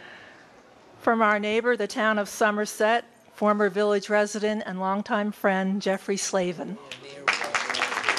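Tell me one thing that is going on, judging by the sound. A woman speaks warmly into a microphone over loudspeakers.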